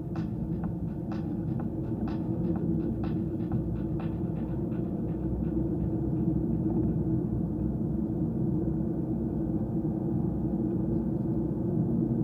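Tyres crunch and rumble over a gravel road.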